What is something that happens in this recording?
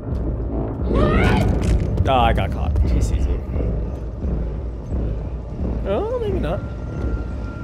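A heavy man grunts and groans gruffly nearby.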